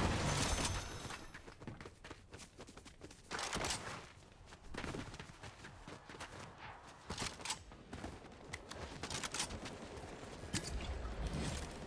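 Footsteps patter quickly on stone and grass.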